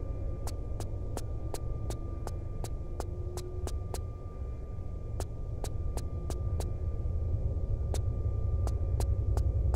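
Footsteps clack quickly on a metal floor.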